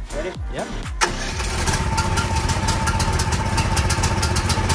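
A small petrol engine sputters to life and idles with a loud, rapid putter close by.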